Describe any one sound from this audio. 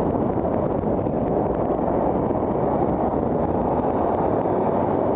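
Wind rushes steadily past while riding down a street outdoors.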